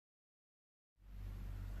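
Sugar pours from a glass into a metal pot.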